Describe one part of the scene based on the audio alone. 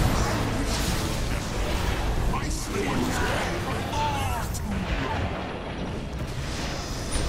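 Magic spells burst and crackle in a fast battle.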